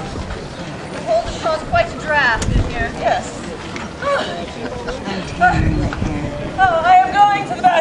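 A woman speaks with animation outdoors.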